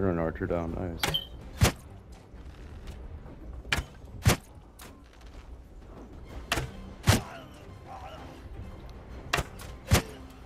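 A bowstring snaps sharply as arrows are loosed, again and again.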